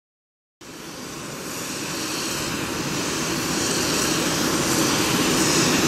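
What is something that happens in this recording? A helicopter's engine roars and whines close by, steadily growing louder.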